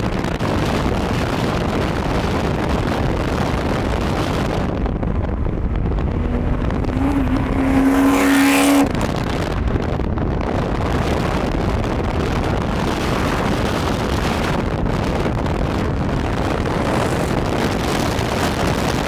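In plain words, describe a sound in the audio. Tyres roar steadily on the road.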